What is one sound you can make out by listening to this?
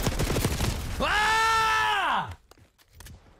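A man shouts and cheers loudly into a microphone.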